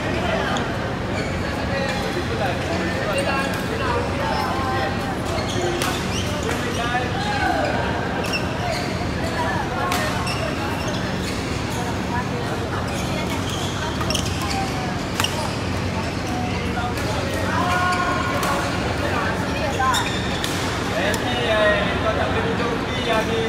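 Shuttlecocks pop off badminton rackets in sharp, quick hits.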